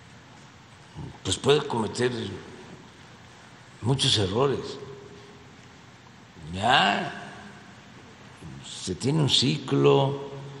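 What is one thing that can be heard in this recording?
An elderly man speaks calmly into a microphone in short bursts.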